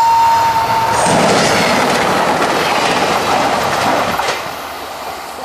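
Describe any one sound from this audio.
A passenger train rushes past loudly on the rails.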